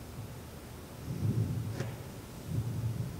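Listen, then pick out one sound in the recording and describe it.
A boy drops down onto a soft floor with a dull thud.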